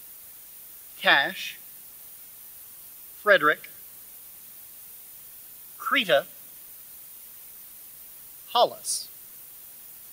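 A man reads out short words one at a time through a microphone, with pauses between them.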